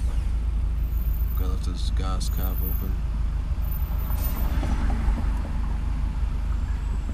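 A car engine idles with a low, steady rumble, heard from inside the car.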